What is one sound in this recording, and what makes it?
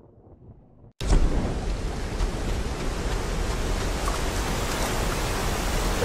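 Rushing water roars steadily nearby.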